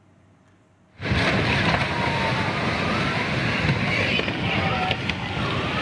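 A building collapses with a loud, rumbling roar that goes on steadily.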